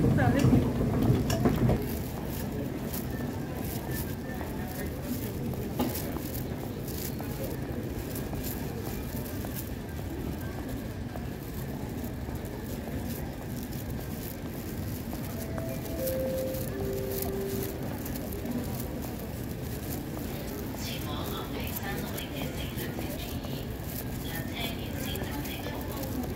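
A large indoor hall murmurs with a distant crowd.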